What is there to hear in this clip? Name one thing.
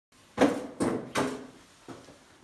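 A sliding door rattles open.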